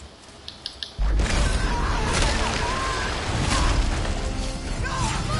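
Heavy blows clash and thud in a loud fight.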